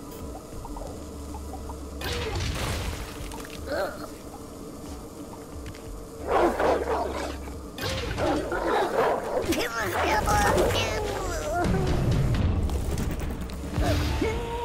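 Electronic game sound effects chime and whoosh.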